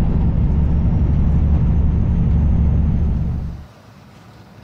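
A truck engine rumbles loudly while driving on a road.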